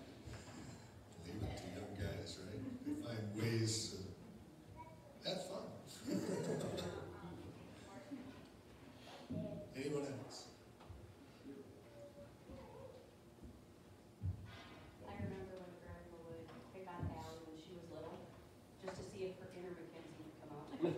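A man speaks calmly at a distance through a loudspeaker in a large echoing room.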